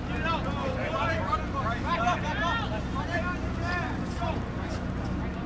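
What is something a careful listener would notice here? Adult spectators nearby shout and cheer excitedly.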